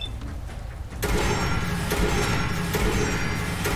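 A heavy machine gun fires in a rapid stream.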